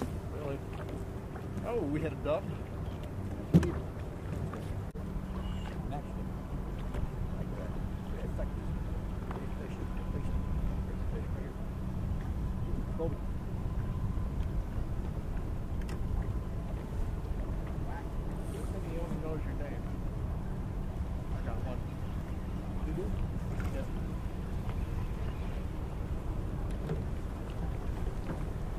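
A boat motor hums steadily.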